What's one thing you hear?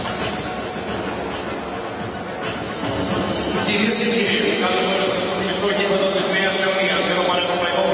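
Basketballs bounce on a wooden court in a large echoing hall.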